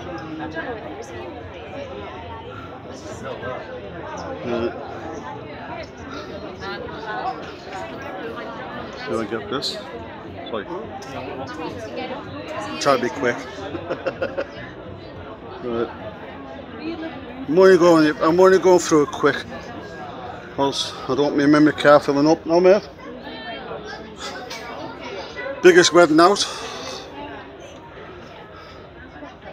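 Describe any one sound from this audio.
Men and women chat in a murmuring crowd nearby.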